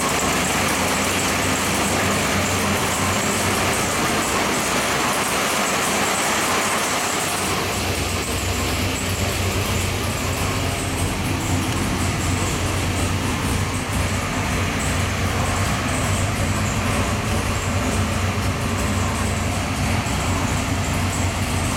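A big-block V8 idles on a dynamometer through open headers.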